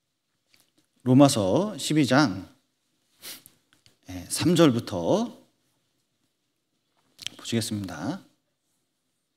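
A middle-aged man speaks calmly and clearly into a microphone, in short phrases with pauses.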